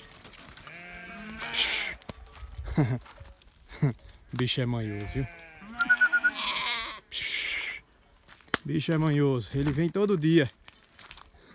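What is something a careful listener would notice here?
A goat bleats loudly nearby, several times.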